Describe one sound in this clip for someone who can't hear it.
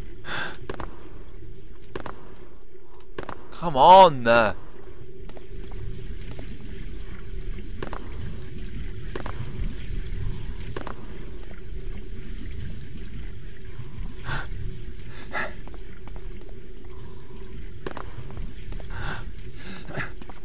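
Footsteps tread slowly on stone.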